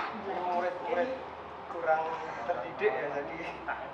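A young man talks on a phone nearby.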